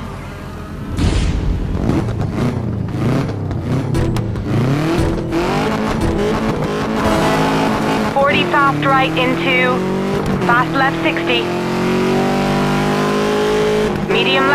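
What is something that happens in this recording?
A rally car engine revs hard and shifts gears as it accelerates.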